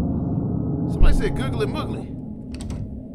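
A door handle rattles against a locked door.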